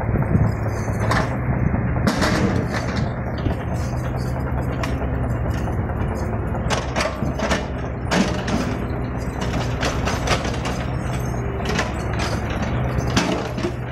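Metal clanks as an excavator bucket moves.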